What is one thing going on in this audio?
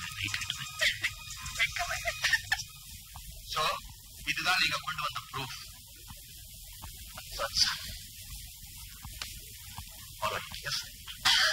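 A man speaks firmly indoors.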